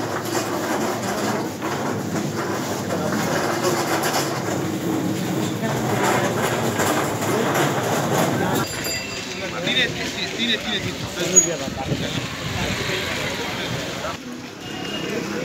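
A crowd of men talks loudly and excitedly nearby.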